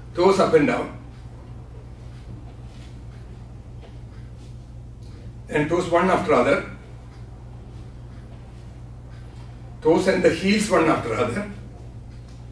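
A man speaks calmly in short phrases with long pauses.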